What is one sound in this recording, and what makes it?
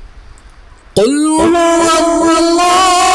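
A man chants loudly in a long, drawn-out melody through a loudspeaker.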